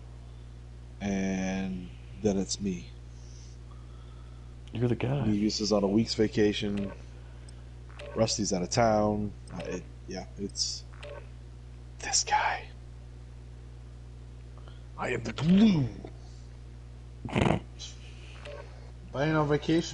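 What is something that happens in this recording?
A man talks animatedly, close to a microphone, in short bursts.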